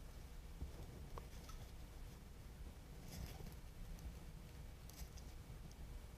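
Leaves and stems rustle softly as flowers are handled.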